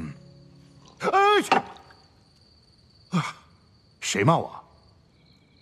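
A middle-aged man groans and cries out in distress.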